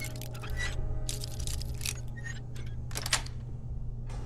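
A lock pin scrapes and clicks as a lock is picked.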